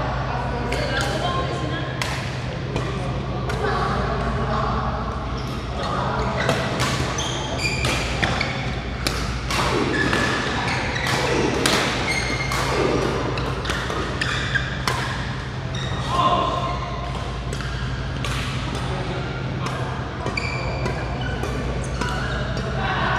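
Rackets smack shuttlecocks again and again, echoing in a large hall.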